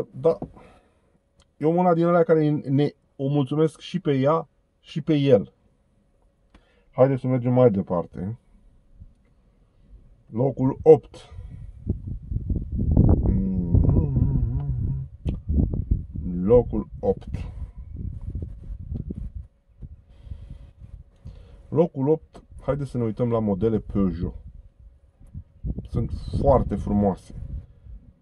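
A middle-aged man talks calmly close by, in short bursts with pauses.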